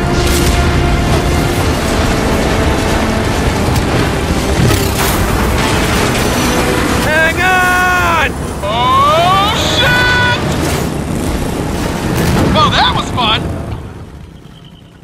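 A motorcycle engine roars as it speeds over rough ground.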